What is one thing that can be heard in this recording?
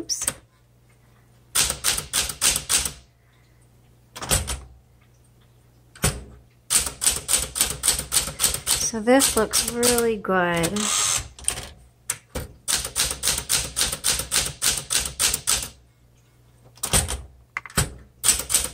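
Typewriter keys clack in quick bursts.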